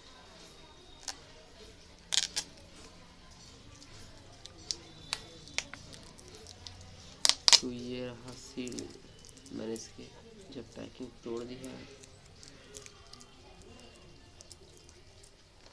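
A plastic wrapper crinkles and rustles as a book is handled.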